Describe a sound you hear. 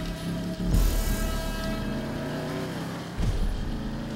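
A car engine roars as the car pulls away.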